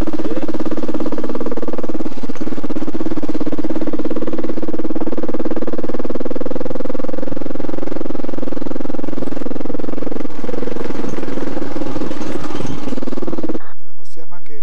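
A motorcycle engine drones steadily while riding.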